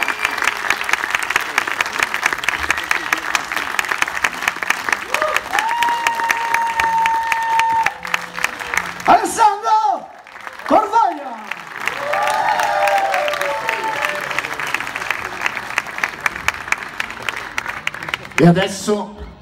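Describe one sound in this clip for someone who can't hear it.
A rock band plays loudly in a large echoing hall.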